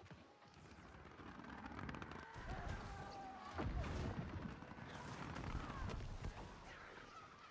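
Fiery magic blasts crackle and boom.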